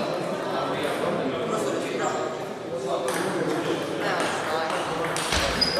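A table tennis ball is struck back and forth with paddles in an echoing hall.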